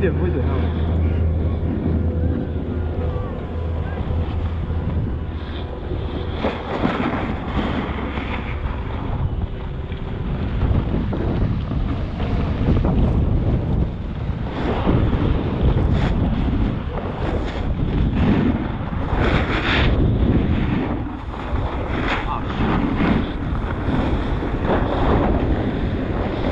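A snowboard scrapes and carves across packed snow in repeated rushing bursts.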